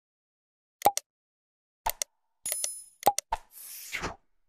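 A computer mouse clicks several times.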